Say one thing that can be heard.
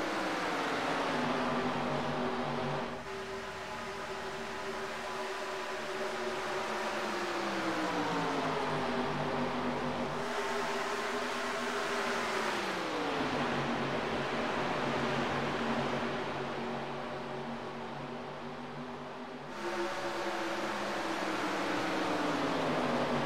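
Race car engines roar steadily.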